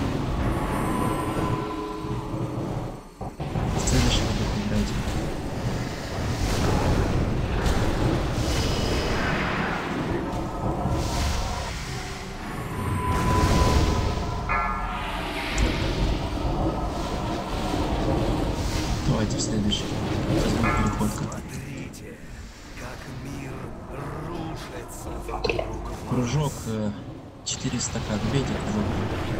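Spell effects crackle and boom in a game battle.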